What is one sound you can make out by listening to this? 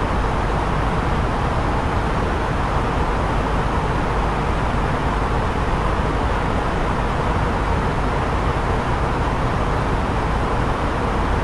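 A jet airliner's engines and rushing air roar steadily in flight.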